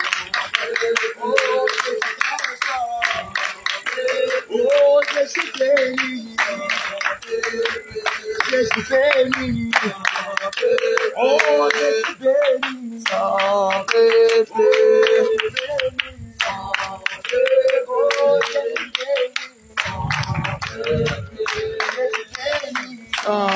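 People clap their hands in rhythm.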